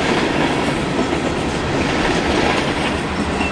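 A diesel-electric locomotive's engine rumbles as it rolls past.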